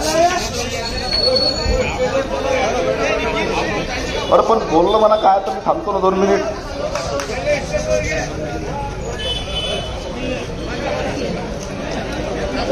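A crowd of men shout and argue loudly and excitedly nearby.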